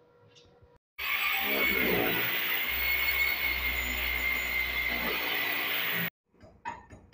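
A power drill whines as it bores into a concrete wall.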